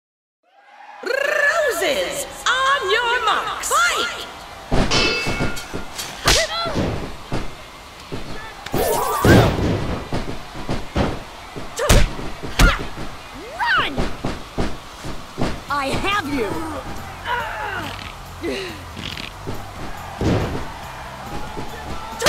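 Blows and body slams land with heavy thuds.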